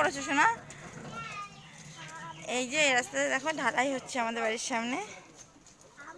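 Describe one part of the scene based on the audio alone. A young child talks loudly and excitedly nearby.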